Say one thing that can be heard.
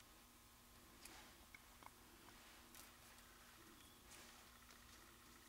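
Paper rustles faintly under hands.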